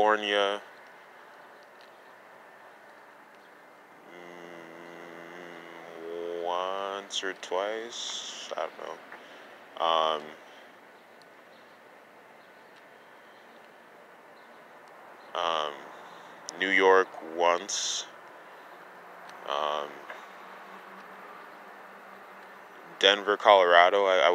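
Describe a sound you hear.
A man speaks in short bursts with pauses, close to the microphone.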